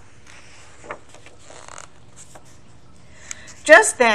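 A paper page rustles softly as it is handled.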